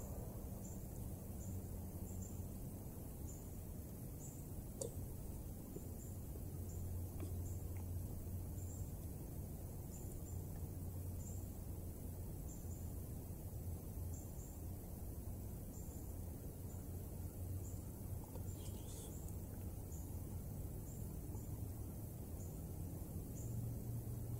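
A camp stove burner roars steadily.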